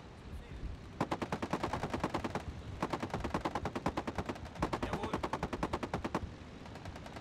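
Machine guns rattle in rapid bursts.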